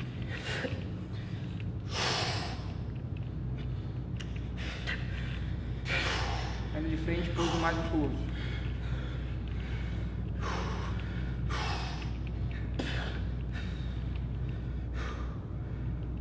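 A man exhales sharply and heavily, close by.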